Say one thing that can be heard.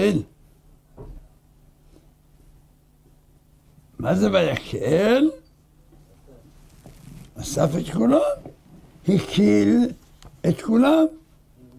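An elderly man speaks calmly and with expression into a close microphone, with pauses.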